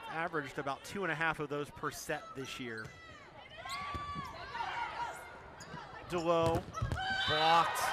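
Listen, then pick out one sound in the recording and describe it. A volleyball is struck hard during a rally.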